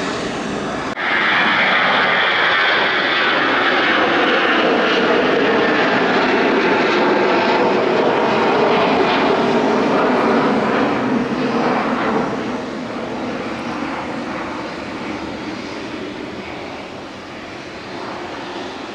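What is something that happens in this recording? A jet airliner's engines roar loudly as the plane taxis past, then slowly fade.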